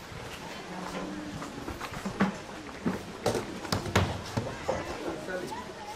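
A plastic jerrycan thuds down onto the ground.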